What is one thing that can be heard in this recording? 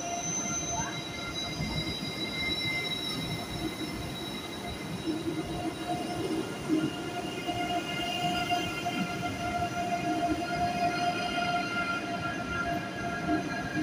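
A train rumbles and whines as it pulls slowly past close by.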